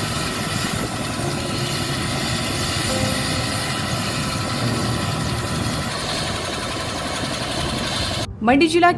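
A helicopter's rotor whirs and its engine roars loudly and steadily outdoors.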